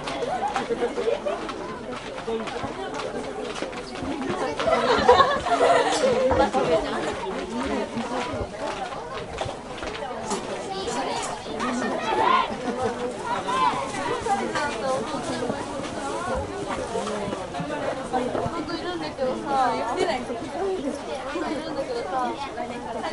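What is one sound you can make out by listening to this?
A group of young women chatter and call out at a distance in the open air.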